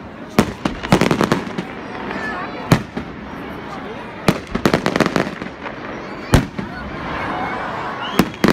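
Fireworks crackle and fizz in a steady hiss.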